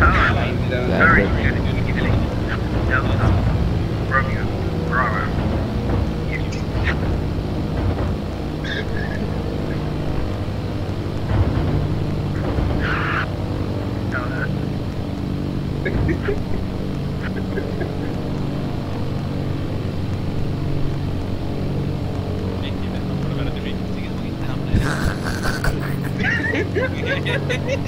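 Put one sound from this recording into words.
A small plane's propeller engine drones steadily.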